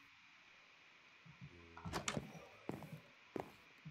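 Footsteps tap on a wooden floor.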